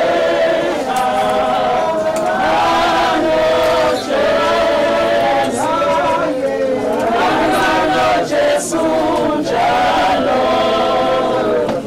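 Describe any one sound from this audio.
A crowd of men and women sing together outdoors, in slow, sustained voices.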